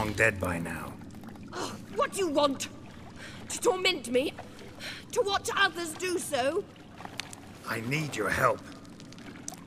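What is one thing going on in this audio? A young woman speaks in a frightened, pleading voice, close by.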